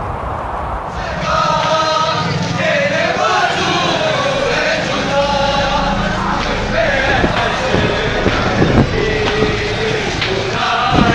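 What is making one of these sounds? A crowd of men chants loudly together outdoors.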